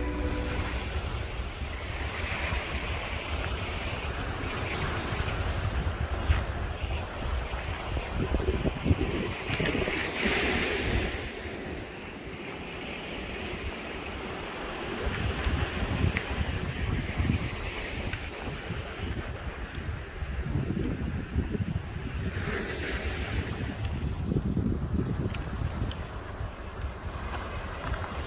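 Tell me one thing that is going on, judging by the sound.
Small waves wash onto a pebble beach.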